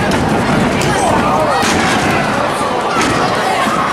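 Bodies slam onto a wrestling ring mat with a thud.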